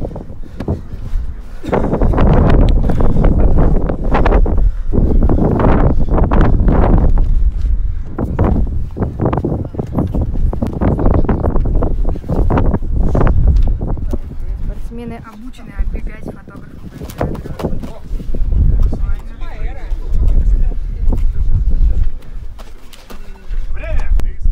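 Two men grapple and thump on a padded mat.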